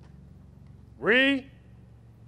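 A young man shouts a short command loudly outdoors.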